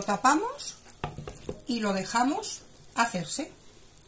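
A glass lid clinks onto a metal pan.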